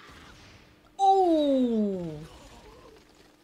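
A young woman exclaims in surprise close to a microphone.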